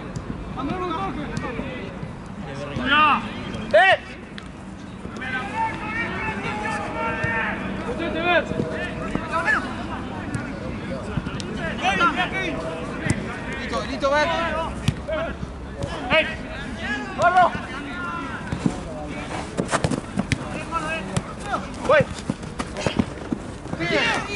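Young men shout and call out to each other in the open air.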